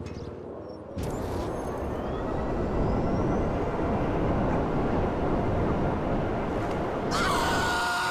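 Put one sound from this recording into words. A jet bike engine roars steadily.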